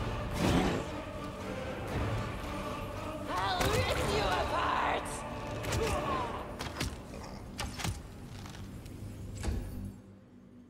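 Sharp impacts and magic blasts crack during a fight.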